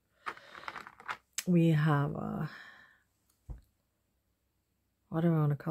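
Small plastic charms click softly together in a hand.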